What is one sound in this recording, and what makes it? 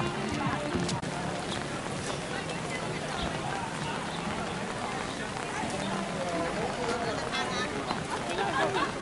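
Rain patters steadily on umbrellas outdoors.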